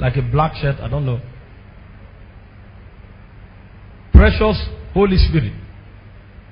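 A man preaches loudly and with passion through a microphone.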